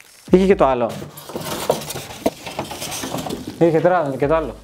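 Cardboard packaging rustles and scrapes.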